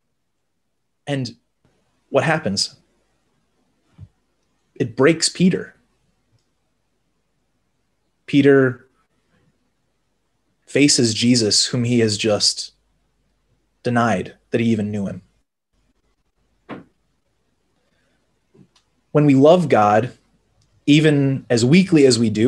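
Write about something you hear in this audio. A young man reads aloud calmly through a microphone, with pauses between phrases.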